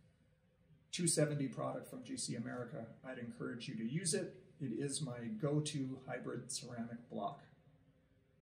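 A man speaks calmly and clearly to a nearby microphone.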